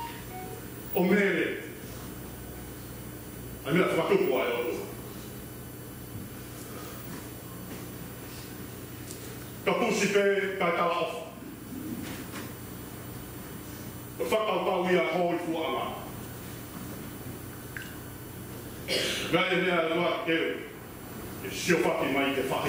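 A middle-aged man speaks with emphasis through a microphone, in short bursts with pauses, in an echoing hall.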